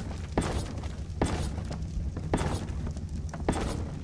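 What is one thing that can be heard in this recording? Wooden building pieces thud into place with a hollow knock.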